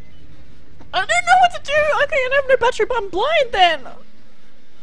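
A young woman shrieks in fright.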